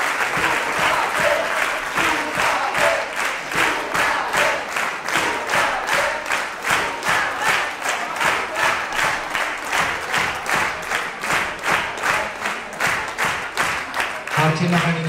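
Fast dance music with a steady, quick beat plays loudly over loudspeakers in a large hall.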